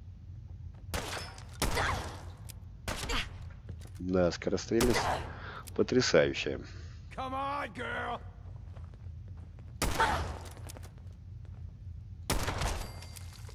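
Pistol shots ring out one at a time, with short echoing tails.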